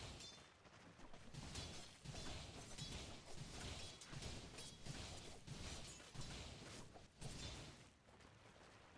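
Game spells crackle and blows clash in a fast battle.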